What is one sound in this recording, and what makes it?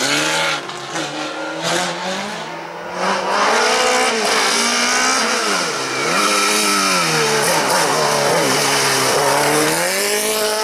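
A racing car engine screams loudly, revving up and down through the gears as it approaches and passes close by.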